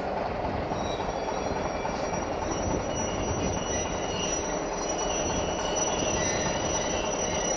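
A train rumbles slowly along the tracks in the distance.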